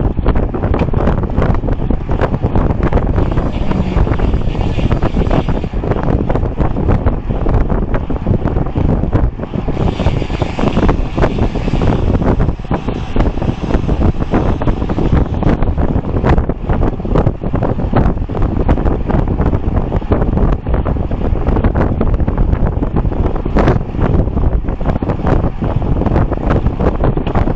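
Strong wind rushes and buffets loudly past a moving bicycle.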